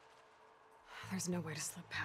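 A young woman speaks with determination.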